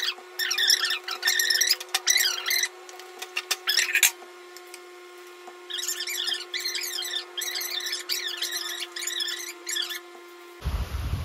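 A middle-aged woman speaks in a squeaky, sped-up voice.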